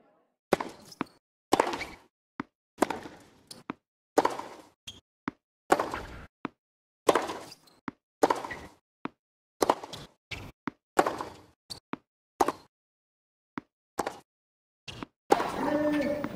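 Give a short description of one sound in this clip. A tennis ball bounces on a hard court.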